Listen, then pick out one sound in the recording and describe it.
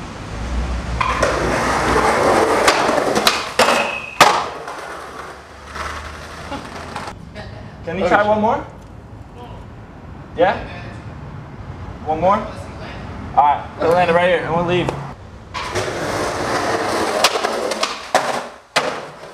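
Skateboard wheels roll loudly over a hard floor.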